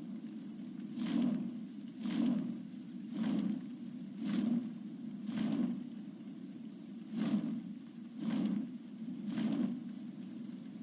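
Large fiery wings beat with rhythmic whooshes.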